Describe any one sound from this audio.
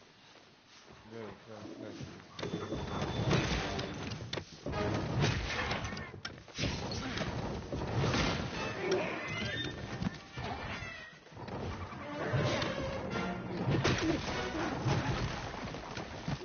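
A large beast growls and thrashes loudly in a fight.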